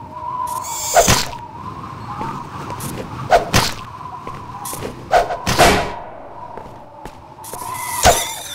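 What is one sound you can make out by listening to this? A metal bar swings and strikes with sharp clanging hits.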